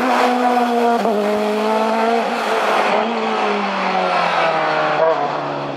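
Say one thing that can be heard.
A racing car engine screams at high revs as the car speeds past.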